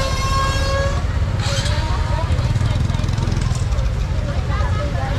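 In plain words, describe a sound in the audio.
A motorbike engine putters close by.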